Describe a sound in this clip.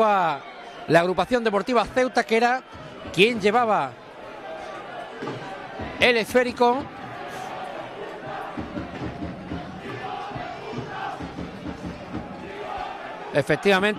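A crowd of spectators murmurs in the background.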